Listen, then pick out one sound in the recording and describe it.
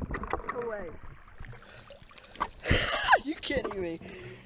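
Water splashes as a young man comes up out of it.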